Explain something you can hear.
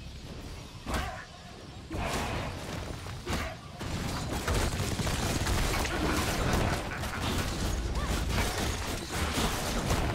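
Spell effects burst and crackle in quick succession.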